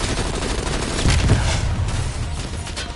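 An explosion booms with a deep roar.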